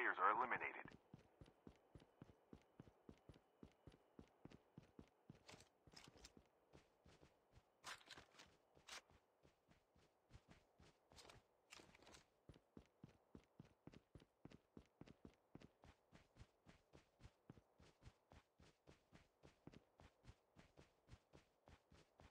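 Quick, steady footsteps shuffle over grass and dirt.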